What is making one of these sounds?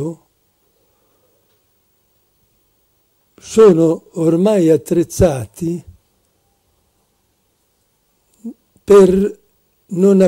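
An elderly man speaks with animation into a microphone, with long pauses.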